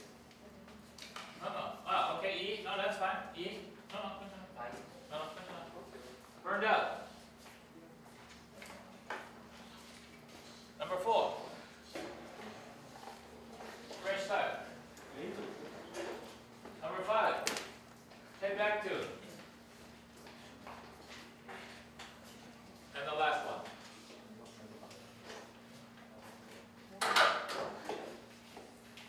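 An elderly man speaks calmly and loudly.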